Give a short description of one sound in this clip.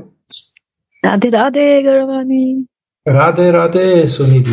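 A woman chants in a sustained voice over an online call.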